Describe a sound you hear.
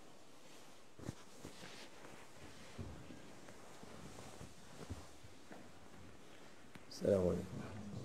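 Clothing rustles as an elderly man shifts and bends.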